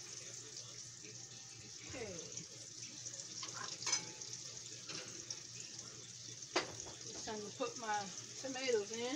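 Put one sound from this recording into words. Food sizzles steadily in a pan.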